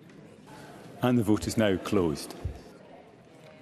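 A man speaks briefly and loudly through a microphone.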